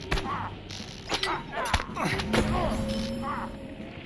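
Weapon blows land in a fight, with sharp hits.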